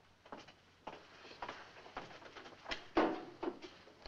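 A box is set down on a table with a thud.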